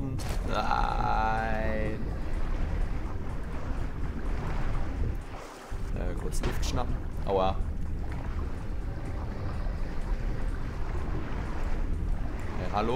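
Water splashes and swishes steadily as a swimmer strokes.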